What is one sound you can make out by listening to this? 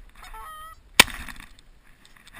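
A shotgun fires a single loud blast nearby.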